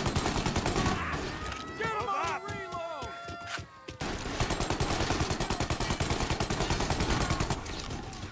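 A Thompson submachine gun fires rapid bursts.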